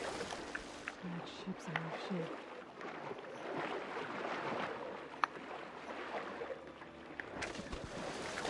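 Water gurgles, muffled, while the swimmer is underwater.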